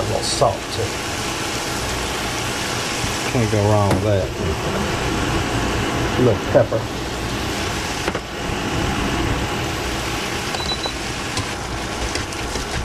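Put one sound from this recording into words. Ground meat sizzles steadily in a hot pan.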